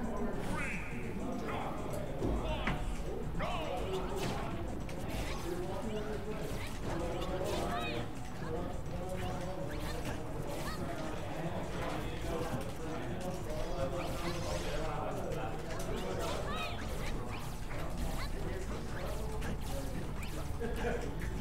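Video game fighters land punches and kicks with sharp thuds and whooshes.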